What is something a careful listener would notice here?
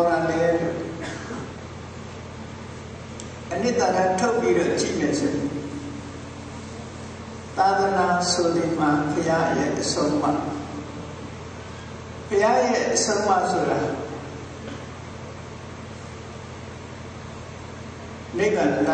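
An elderly man speaks calmly into a microphone, in bursts with long pauses.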